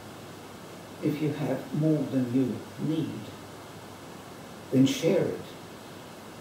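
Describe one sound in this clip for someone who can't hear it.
An elderly man reads aloud calmly, close by in a quiet room.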